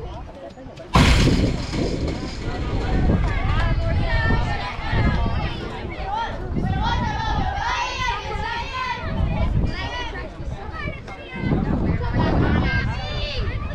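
Young girls shout and cheer outdoors.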